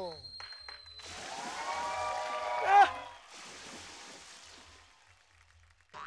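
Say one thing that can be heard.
Water pours from a barrel and splashes onto a man.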